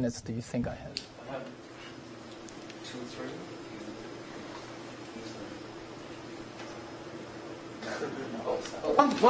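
An elderly man speaks calmly through a lapel microphone.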